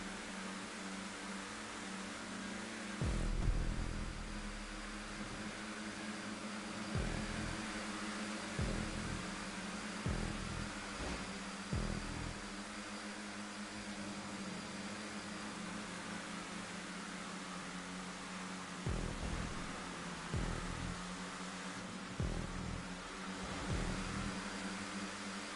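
Race car engines roar steadily at high speed.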